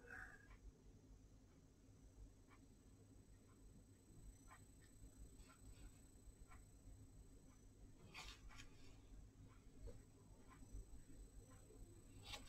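A paintbrush dabs and scratches softly on paper.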